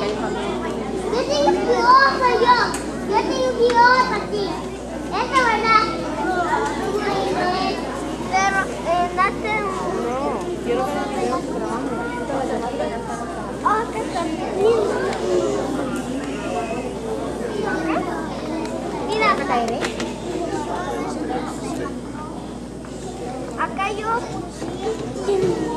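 Many children chatter in an echoing hall.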